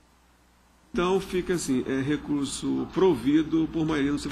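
A man speaks steadily through a microphone in a large hall.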